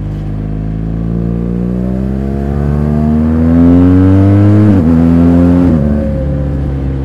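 A motorcycle engine revs up loudly and then drops back.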